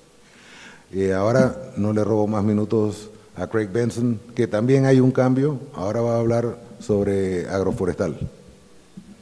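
A middle-aged man speaks with animation into a microphone, heard through loudspeakers in an echoing hall.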